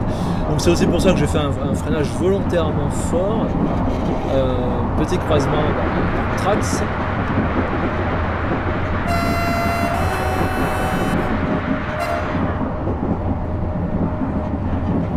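A train engine rumbles steadily as the train runs along the tracks at speed.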